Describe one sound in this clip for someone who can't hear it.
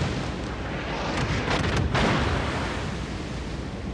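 Shells splash into the sea.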